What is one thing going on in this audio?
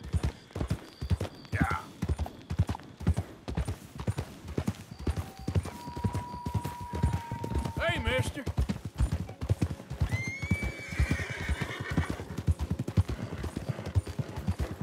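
Horse hooves thud steadily on a dirt track.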